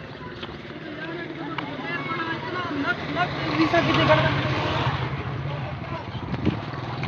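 Motorcycles ride past with a rising and fading engine noise.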